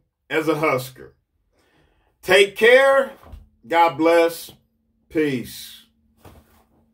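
A middle-aged man speaks calmly and closely into a microphone, in short bursts.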